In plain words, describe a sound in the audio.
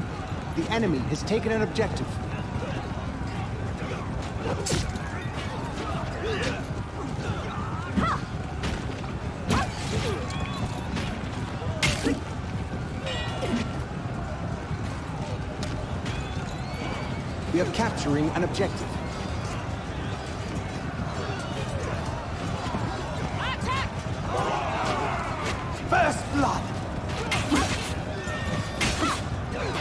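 Soldiers shout in a crowded fight.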